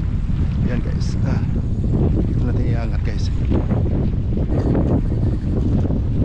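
Small waves lap against a stone wall.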